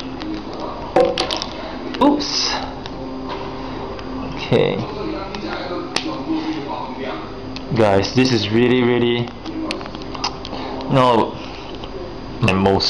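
Plastic toy parts click and rattle as hands handle them.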